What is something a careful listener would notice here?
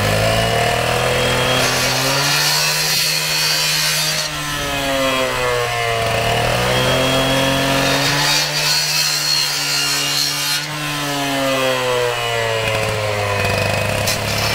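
A petrol cut-off saw roars loudly, its engine pitch rising and falling.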